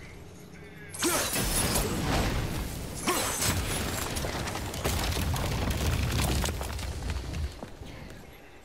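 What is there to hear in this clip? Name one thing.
A deep rumble roars with crackling debris.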